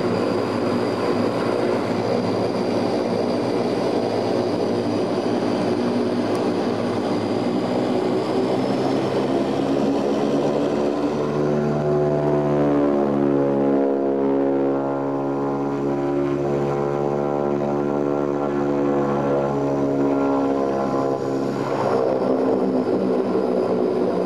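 Propeller engines drone loudly and steadily from up close.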